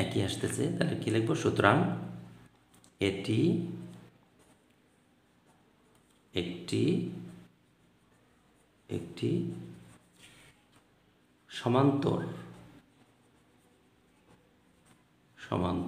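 A felt-tip pen scratches softly on paper.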